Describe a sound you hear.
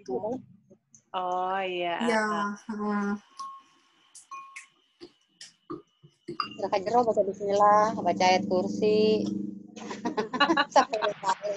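A spoon clinks against a ceramic bowl.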